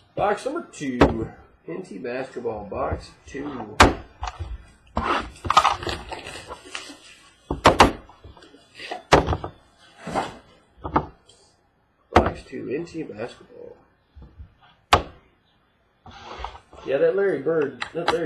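A cardboard box scrapes and knocks against a hard surface.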